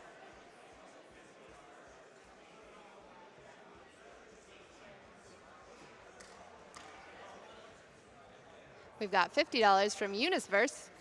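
A large audience murmurs and chatters in a hall.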